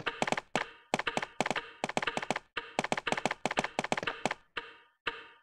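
Footsteps echo on a hard floor in a large hall.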